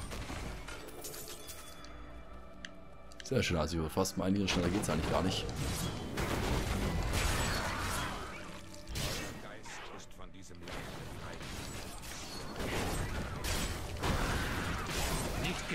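Weapons strike and clash against monsters.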